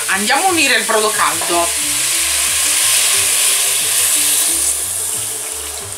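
Liquid pours into a sizzling pot.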